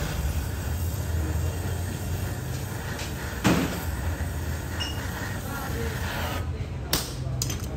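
A gas torch roars steadily.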